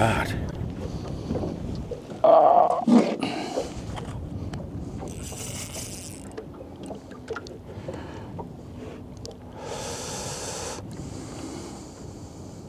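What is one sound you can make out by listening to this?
A fishing reel whirs as a line is wound in.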